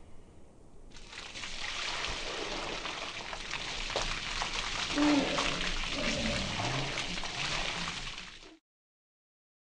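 Water pours and splashes heavily.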